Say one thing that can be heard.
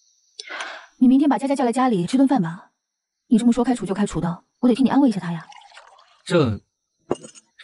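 A young woman speaks calmly and questioningly.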